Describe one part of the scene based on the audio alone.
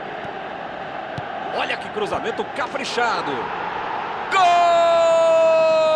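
A stadium crowd roars in a loud cheer.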